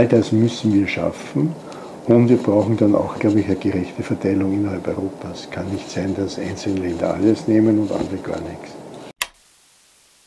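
An elderly man speaks calmly and thoughtfully, close by.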